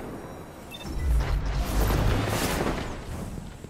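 A loud electric blast roars and crackles.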